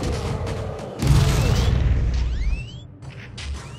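A deep explosion booms.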